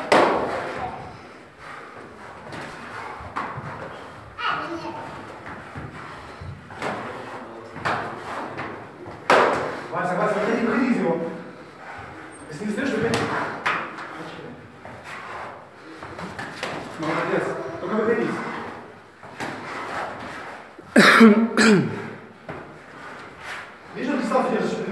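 Gloved punches land with dull slaps.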